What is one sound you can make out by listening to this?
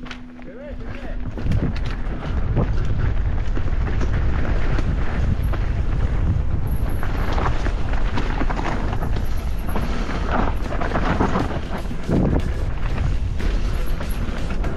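Tyres crunch over a rough dirt trail.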